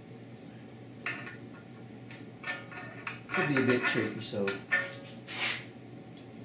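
A metal brake rotor clinks and clanks as it is handled.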